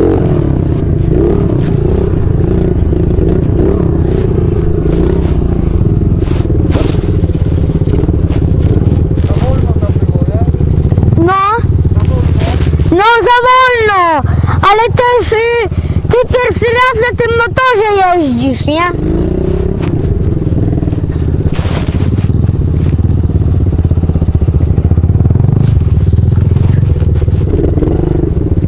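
A dirt bike engine roars close by, revving up and down.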